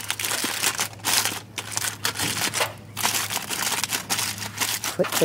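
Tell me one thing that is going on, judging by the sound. Aluminium foil crinkles and rustles as hands press it down.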